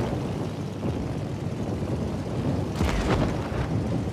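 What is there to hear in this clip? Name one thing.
An explosion booms as a plane is hit.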